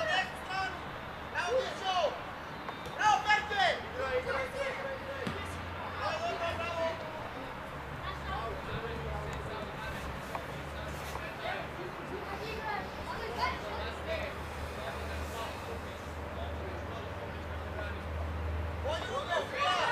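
Young players shout to each other outdoors at a distance.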